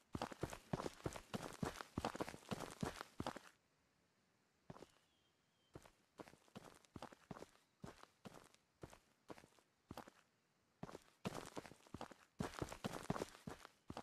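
Footsteps crunch quickly over grass and dirt.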